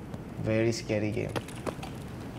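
A young man speaks briefly and casually into a close microphone.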